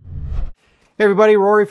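A man speaks calmly and close up.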